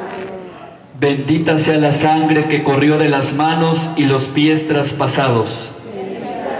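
A man chants loudly through a microphone.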